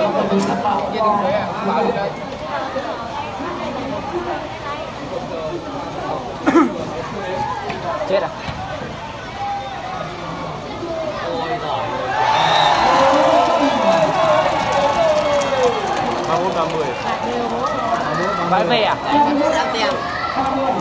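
A large outdoor crowd chatters, shouts and cheers.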